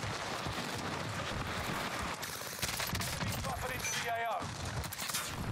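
Game gunfire pops in quick bursts.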